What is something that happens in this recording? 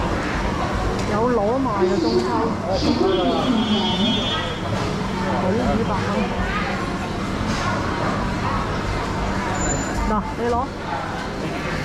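Adults talk with animation close by.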